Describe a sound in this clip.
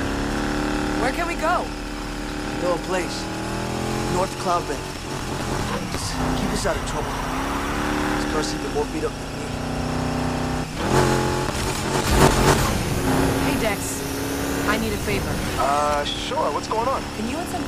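Tyres squeal on wet asphalt.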